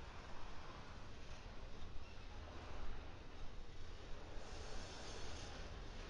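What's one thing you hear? Steel wheels clatter on the rails.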